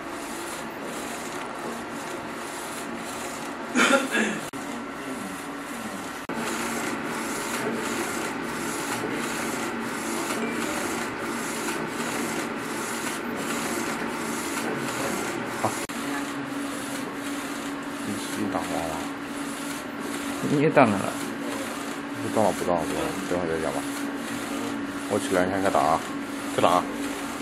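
A printer's carriage whirs as it slides back and forth.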